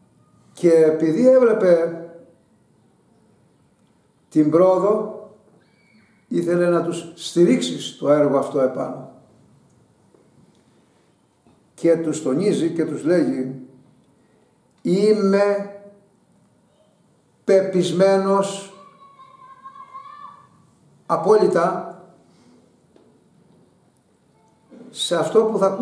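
An elderly man speaks slowly and clearly, close by, in short phrases with pauses.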